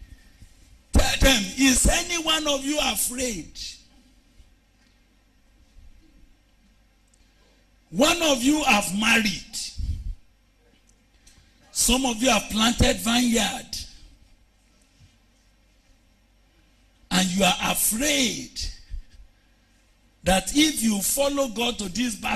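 A man preaches loudly and passionately into a microphone, in bursts with pauses.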